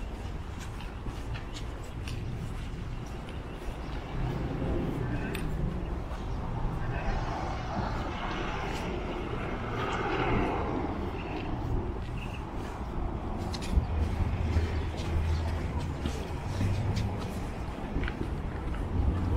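Car traffic rumbles along a city street.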